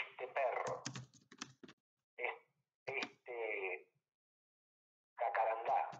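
A man talks calmly and close to a microphone, with short pauses.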